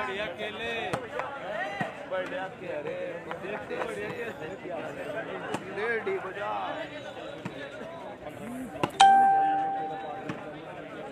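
A crowd of people talks and calls out loudly outdoors.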